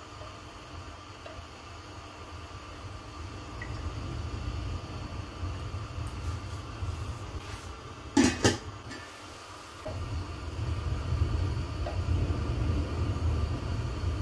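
Thick batter pours and splashes softly into a glass dish.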